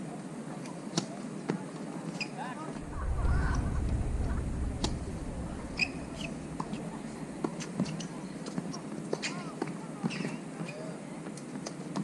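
A tennis ball is struck with a racket with sharp pops.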